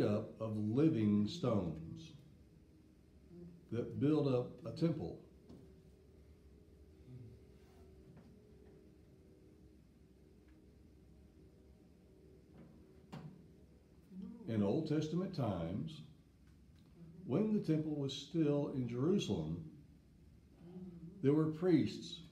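An elderly man speaks with animation, pausing now and then.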